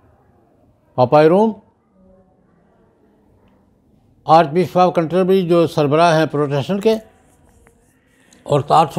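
An elderly man speaks calmly through a microphone, in short bursts with pauses.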